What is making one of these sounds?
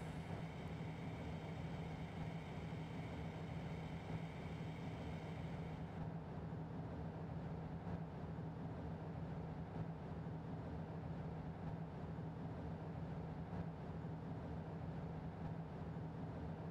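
A locomotive engine rumbles steadily with a low hum.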